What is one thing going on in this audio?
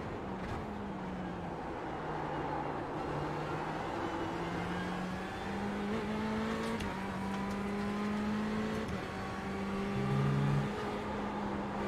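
A racing car engine roars steadily and shifts through gears.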